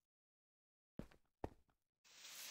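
A wooden chest thuds shut.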